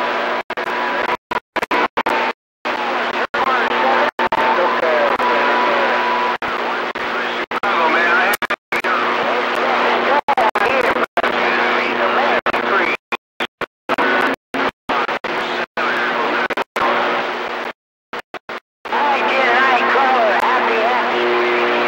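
A CB radio receiver crackles with static through its loudspeaker.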